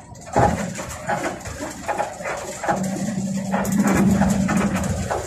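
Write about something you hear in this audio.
Tyres rumble on a paved road.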